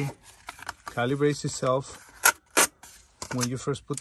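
A paper label tears off.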